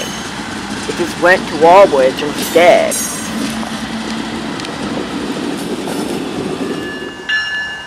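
A diesel locomotive rumbles past close by.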